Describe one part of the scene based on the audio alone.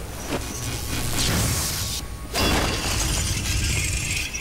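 A magical blast whooshes and roars.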